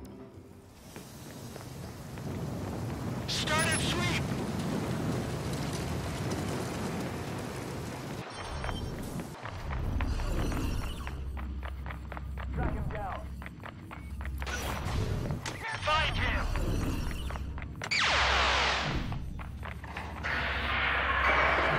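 Footsteps of a man running on pavement.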